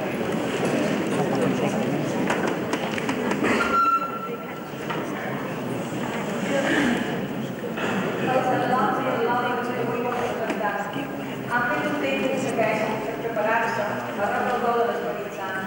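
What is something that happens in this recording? A woman reads aloud calmly through a microphone in a large echoing hall.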